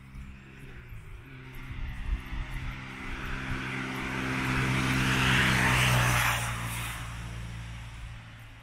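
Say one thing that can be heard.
An engine hums steadily while driving along a road.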